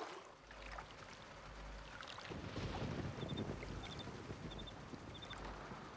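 Water laps gently against a shore.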